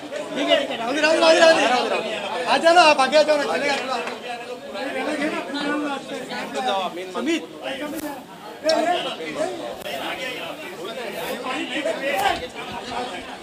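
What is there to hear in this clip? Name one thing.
A man shouts with excitement close by.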